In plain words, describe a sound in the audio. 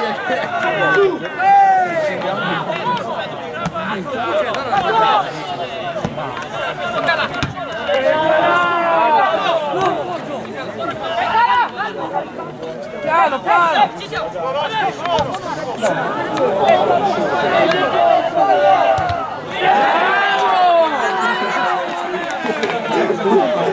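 Spectators, mostly men, talk and shout loudly close by, outdoors.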